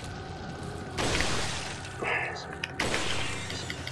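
A rifle fires loud, echoing shots.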